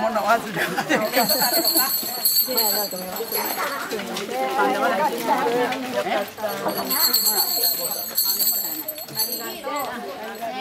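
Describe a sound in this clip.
Small metal bells jingle as they are shaken.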